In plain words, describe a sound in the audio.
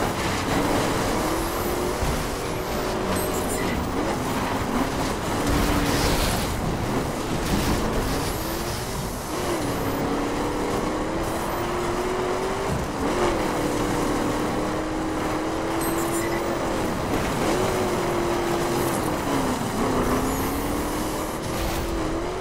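Tyres skid and crunch over gravel.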